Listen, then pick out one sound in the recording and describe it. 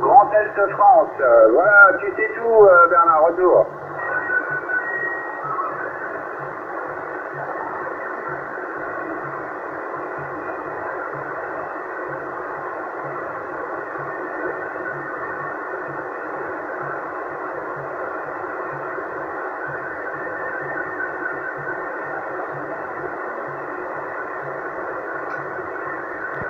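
A radio receiver hisses with steady static through its loudspeaker.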